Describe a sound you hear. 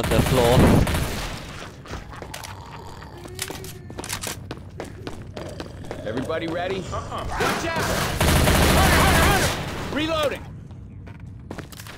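A submachine gun fires bursts of shots.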